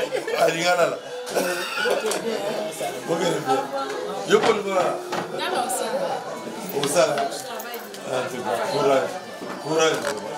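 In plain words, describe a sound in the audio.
Several men and women chatter in the background.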